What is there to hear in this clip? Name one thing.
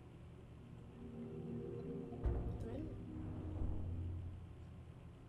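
A heavy stone platform rumbles and grinds as it moves.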